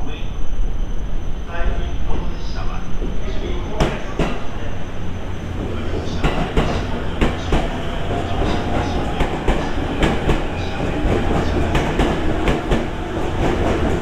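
A train rumbles into the station and rolls past close by.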